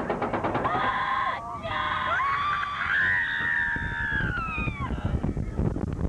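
Roller coaster riders scream.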